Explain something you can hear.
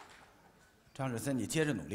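A young man speaks up nearby.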